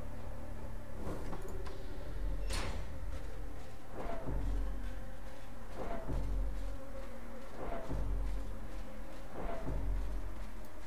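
Heavy footsteps thud slowly and evenly.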